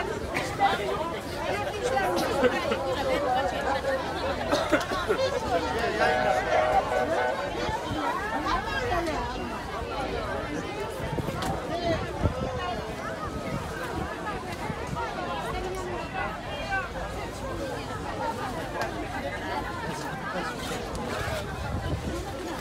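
Many voices of men and women chatter all around outdoors.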